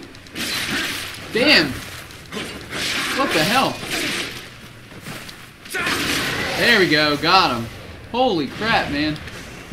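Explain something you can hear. Swords clash and slash in a game fight.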